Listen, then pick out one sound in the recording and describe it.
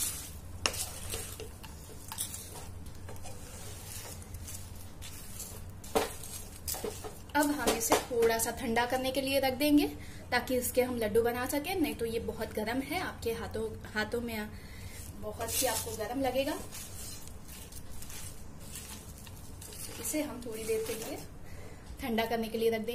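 A wooden spatula scrapes and stirs a sticky mixture in a pan.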